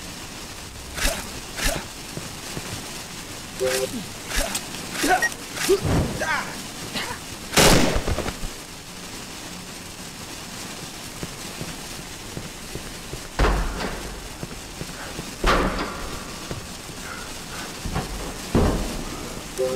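A gun fires with sharp loud shots.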